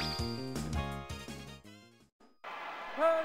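Electronic video game music plays a quick jingle.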